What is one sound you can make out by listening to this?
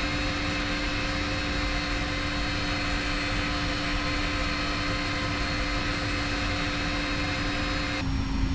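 A jet engine whines steadily as an airliner taxis.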